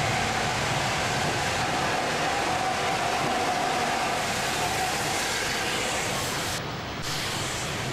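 A steam locomotive chugs slowly past, its rumble echoing under a station roof.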